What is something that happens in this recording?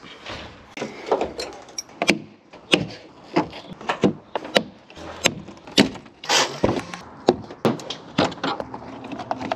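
Metal clicks and knocks against a car door.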